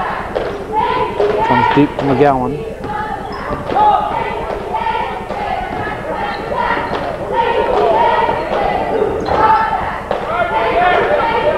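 Young men shout across an echoing gym.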